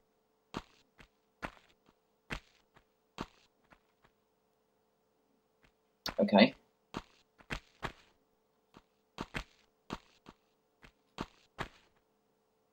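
Footsteps tap quickly on a hard stone floor.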